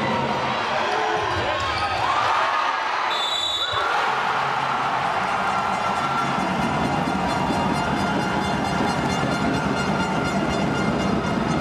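A large crowd cheers and roars in an echoing hall.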